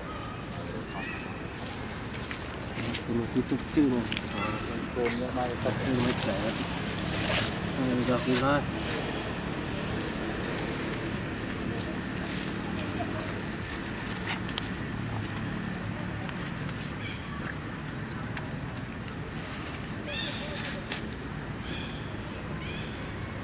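Dry leaves rustle as monkeys move.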